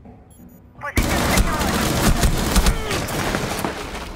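Gunshots crack loudly in a rapid burst.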